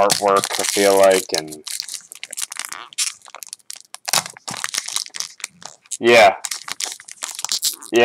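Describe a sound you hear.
Foil wrapping crinkles and tears as hands pull it open.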